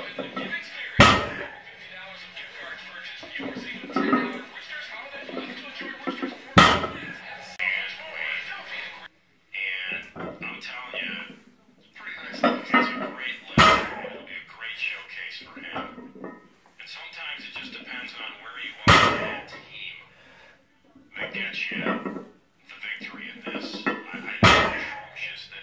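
A loaded barbell thuds and clanks onto the floor.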